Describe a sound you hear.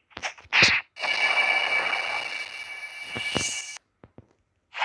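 A loud crackling energy blast roars and then cuts off.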